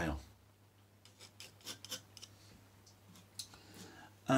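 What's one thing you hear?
A metal tool scratches lightly across a hard board.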